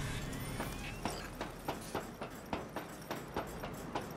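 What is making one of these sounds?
Metal rungs clank as someone climbs a ladder.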